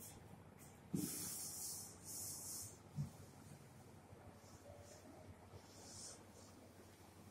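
An eraser wipes across a whiteboard.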